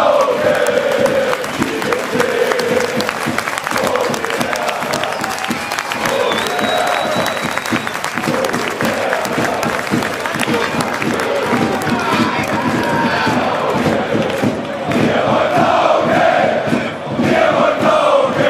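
Spectators clap close by.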